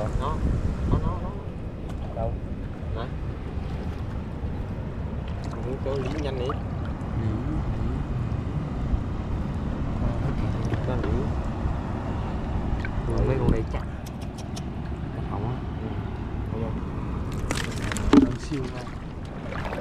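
Hands splash and swirl in shallow water close by.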